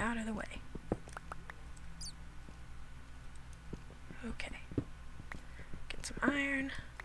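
A young woman talks casually into a close microphone.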